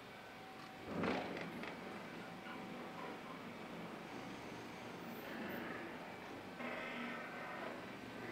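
A garage door rumbles and rattles as it slowly rolls open.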